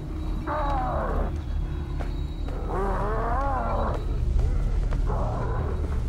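A wooden ladder creaks as someone climbs down.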